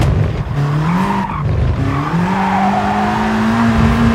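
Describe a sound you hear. Tyres squeal as a race car corners.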